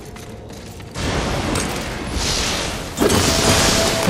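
An electric crackle bursts and fizzes.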